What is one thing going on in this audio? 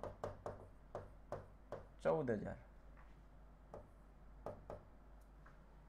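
Chalk taps and clicks sharply against a board.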